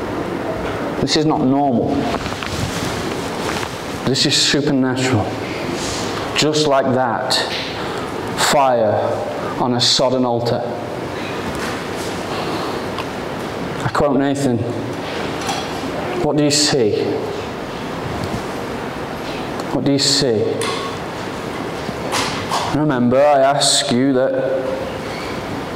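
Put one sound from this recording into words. A young man speaks calmly through a microphone in a large echoing hall.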